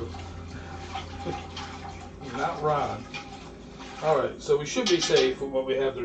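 A spoon stirs and scrapes inside a metal pot.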